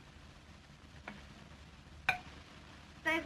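Glassware clinks sharply.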